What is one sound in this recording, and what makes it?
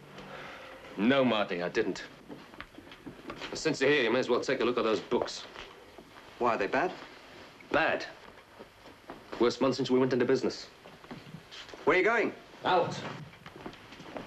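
A second man answers sharply.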